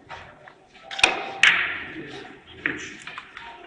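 Billiard balls click sharply against each other and knock on the cushions.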